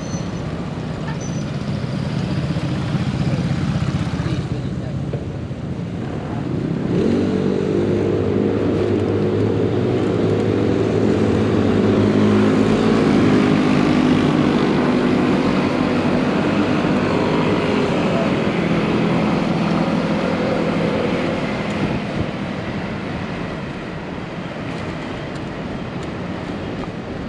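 Wind rushes steadily past while riding outdoors.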